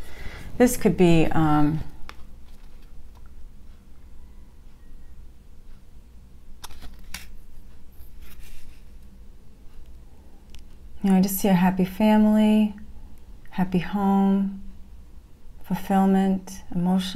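A middle-aged woman speaks calmly and close to the microphone, pausing between phrases.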